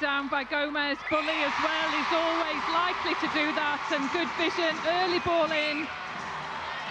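A crowd of young girls screams and cheers loudly.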